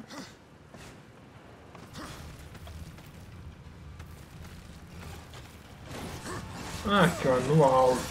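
A swarm of creatures rustles and skitters.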